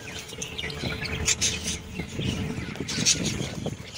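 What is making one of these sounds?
Wings flutter as a budgerigar flies in.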